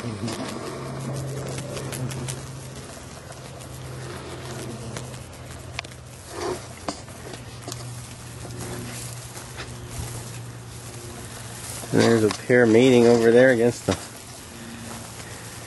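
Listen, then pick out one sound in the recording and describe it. Flies buzz steadily close by.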